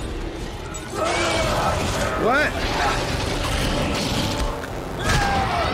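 A creature growls and shrieks during a fight.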